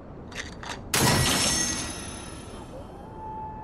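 A game pickup chimes with a bright shimmer.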